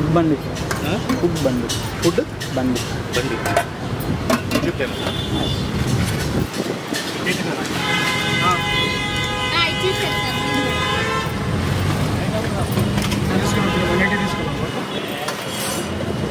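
Several men and women talk nearby.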